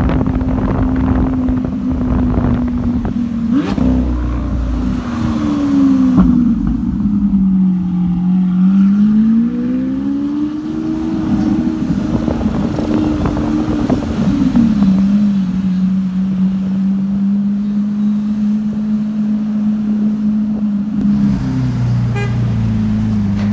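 A powerful car engine drones loudly, its pitch rising and falling as it revs.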